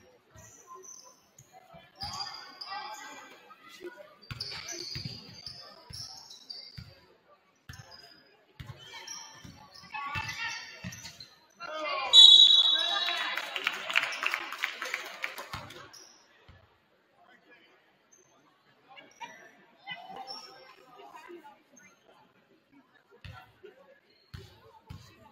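A basketball thuds as it bounces on the court.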